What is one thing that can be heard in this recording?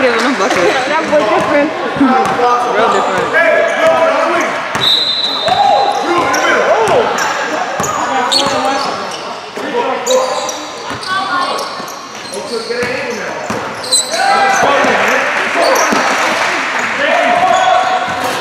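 Sneakers squeak sharply on a court floor in a large echoing hall.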